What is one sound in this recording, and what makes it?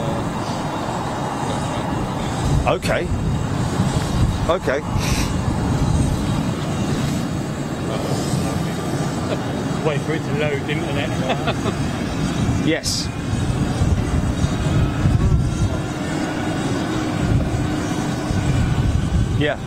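Jet engines rumble steadily outdoors.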